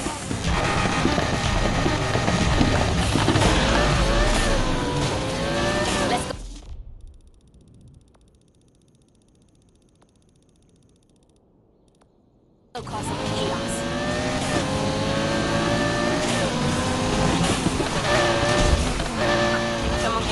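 A V10 sports car engine roars at full throttle.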